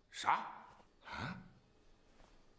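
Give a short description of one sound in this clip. An older man speaks in short, puzzled bursts close by.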